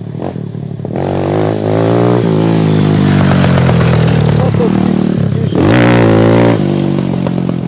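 Another dirt bike roars loudly close by.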